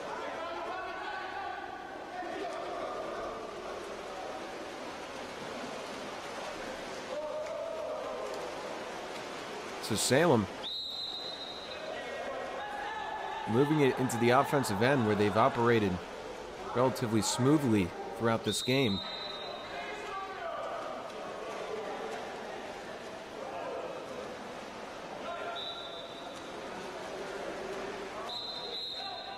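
Swimmers splash and churn through water.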